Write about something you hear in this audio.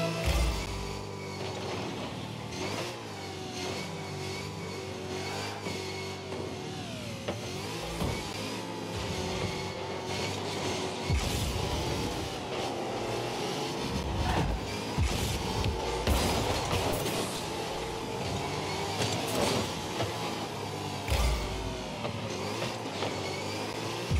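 A game car's engine hums and boosts steadily.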